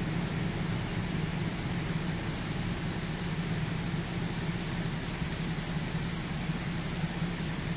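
A hydraulic pump whines as a tipping trailer raises its body.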